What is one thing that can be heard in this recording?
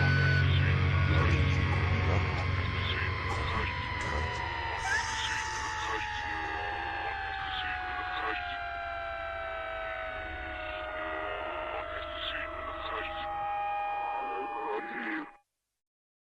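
A young man sings into a microphone over music.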